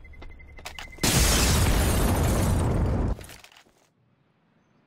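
A loud explosion booms and rumbles, then fades away.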